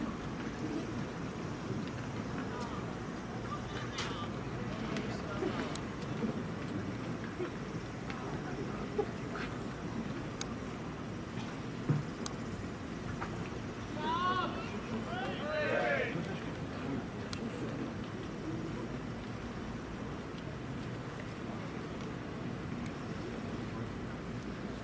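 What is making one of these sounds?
A crowd murmurs faintly far off outdoors.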